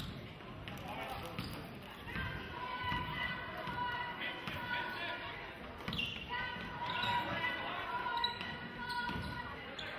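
A crowd murmurs and calls out from the stands.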